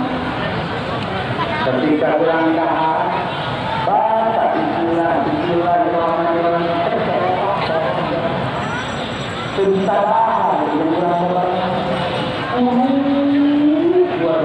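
A crowd of men chants loudly together in unison outdoors.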